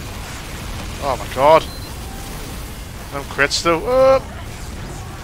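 A man speaks loudly with animation close to a microphone.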